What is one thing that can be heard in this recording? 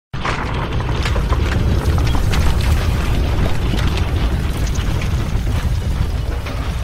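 Stone cracks and shatters, with pieces clattering down.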